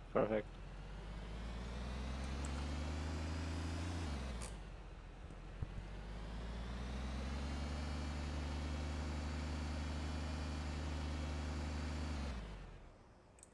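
A truck engine drones while driving.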